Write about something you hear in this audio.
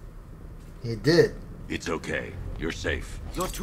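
A man answers in a deep, calm voice.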